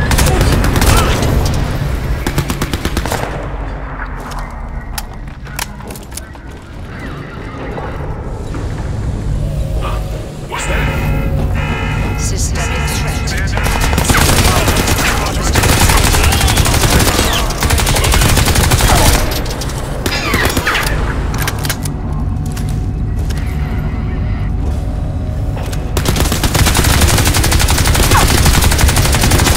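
Rapid gunshots crack and echo in bursts.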